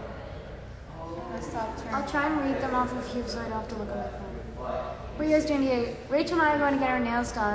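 A young woman sings loudly in a room.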